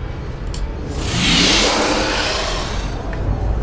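An electronic whoosh swells and fades.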